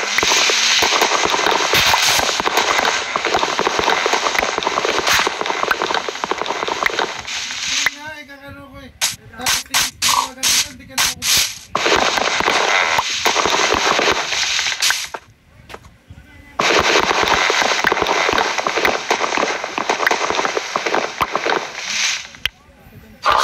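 Video game leaf blocks rustle and crunch as they are broken.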